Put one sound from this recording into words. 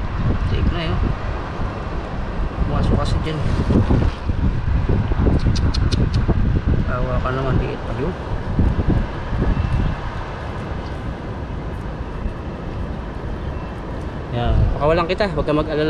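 A man talks calmly close to the microphone.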